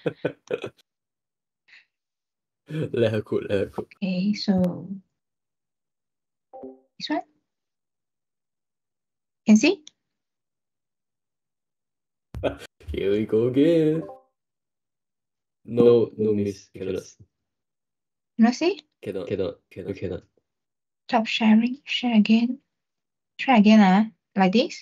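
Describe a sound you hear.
A young man talks casually through an online call.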